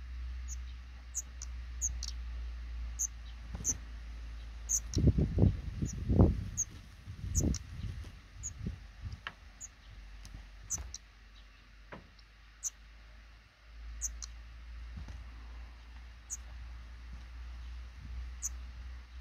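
Nestling birds give faint, high, short cheeps now and then.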